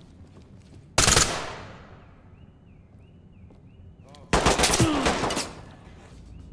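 A rifle fires a loud, fast burst that echoes in a room.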